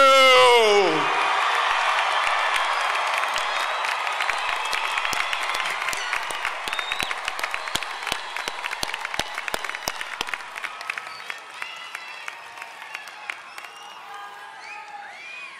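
A large crowd cheers and applauds, slowly fading.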